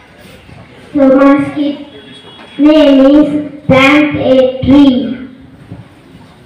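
A boy speaks loudly into a microphone through a loudspeaker.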